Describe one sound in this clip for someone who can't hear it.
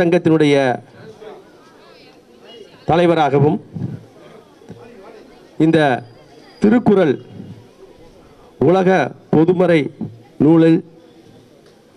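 A man speaks in short bursts through a microphone over a loudspeaker, with pauses between phrases.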